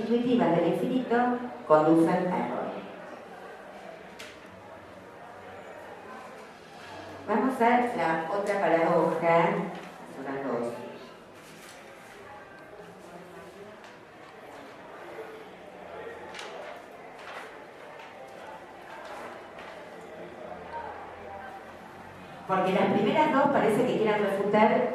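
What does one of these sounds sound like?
A woman reads aloud in bursts into a microphone, heard through loudspeakers.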